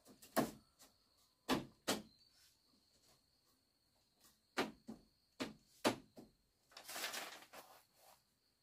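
Bamboo strips knock and clatter as they are woven into a wall.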